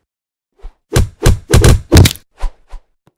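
A bat strikes with heavy, rapid thuds.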